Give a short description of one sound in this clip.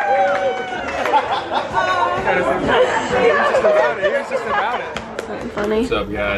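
A group cheers and laughs.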